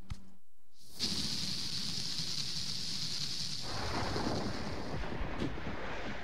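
A spray hisses steadily out of a watering can, then fades.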